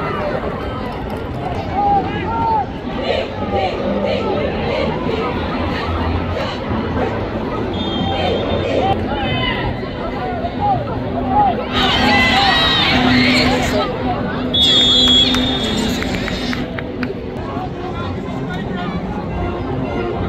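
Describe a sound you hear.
A large crowd cheers and shouts throughout, loudest in bursts.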